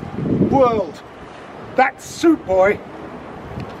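An elderly man reads aloud outdoors.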